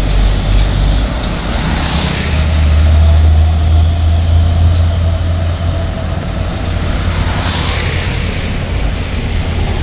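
A motorcycle engine buzzes past close by.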